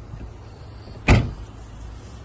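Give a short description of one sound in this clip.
A car door unlatches with a sharp click.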